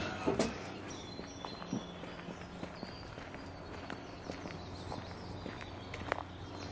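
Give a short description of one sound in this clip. Footsteps crunch slowly on a gravel path outdoors.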